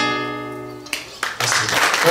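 An acoustic guitar rings out a final chord.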